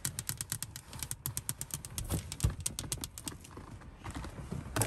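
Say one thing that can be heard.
Long fingernails tap quickly and lightly on glass.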